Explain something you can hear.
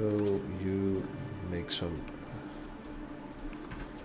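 Soft game menu chimes sound as options are picked.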